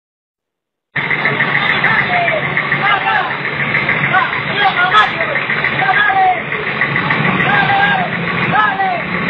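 A bus engine rumbles slowly.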